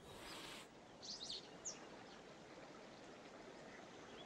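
Flying creatures screech faintly overhead.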